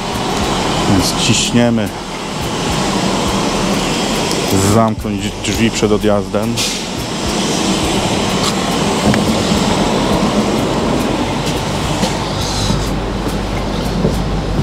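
A train idles beside a platform with a steady hum.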